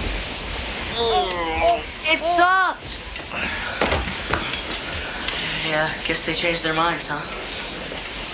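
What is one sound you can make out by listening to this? A teenage boy speaks up nearby, startled.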